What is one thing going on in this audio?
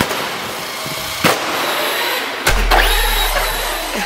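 A toy car lands hard with a thud.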